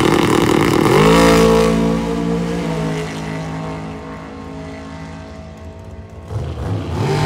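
A drag racing car's engine revs up sharply and roars away, fading into the distance.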